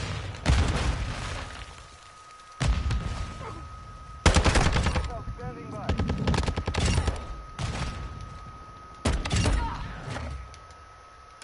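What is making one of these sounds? Rapid gunfire bursts out in loud, sharp volleys.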